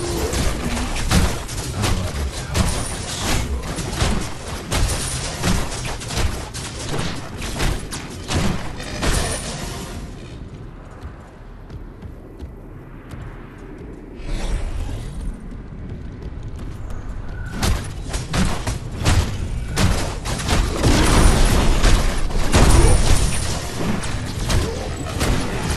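Weapons clash and strike in rapid, heavy blows.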